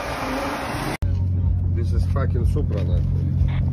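A car engine idles with a steady rumble.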